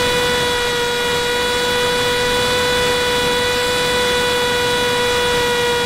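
An electric motor whines steadily at a high pitch.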